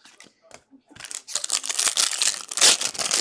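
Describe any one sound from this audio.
A plastic wrapper crinkles and rustles up close.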